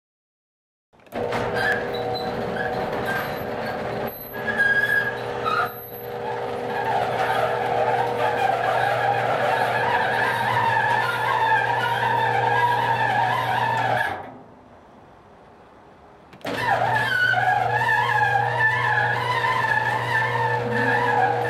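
An old garage door creaks and squeals loudly as it rolls along its track.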